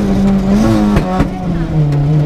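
Sharp knocks and bangs sound as the car bumps over the road.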